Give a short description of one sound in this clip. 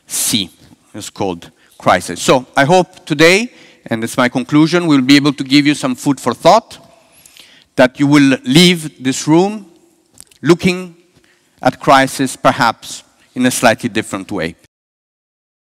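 A middle-aged man speaks calmly through a headset microphone.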